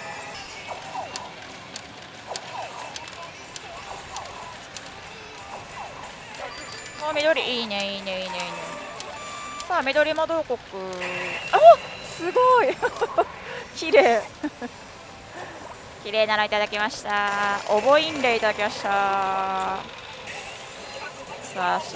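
A pachinko machine plays electronic sound effects.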